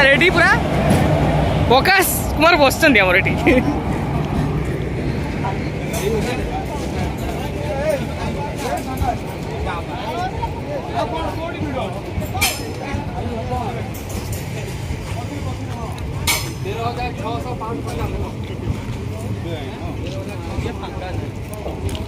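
A crowd of men chatter nearby.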